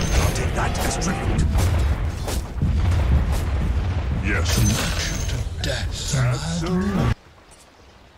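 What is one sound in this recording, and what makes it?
Magic spells and blows crackle and thud in a fast battle.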